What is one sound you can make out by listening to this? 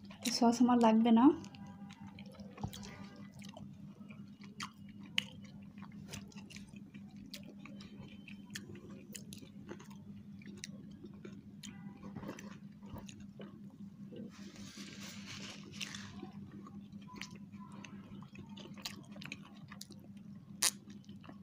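Two people chew food close by with soft, wet smacking sounds.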